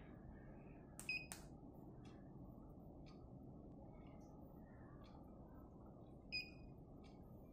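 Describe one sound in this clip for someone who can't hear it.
A phone gives short electronic beeps.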